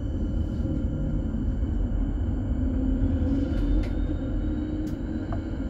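A vehicle rumbles steadily over a cobbled street.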